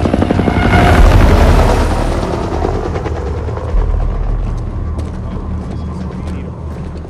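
An aircraft engine rumbles loudly and slowly fades.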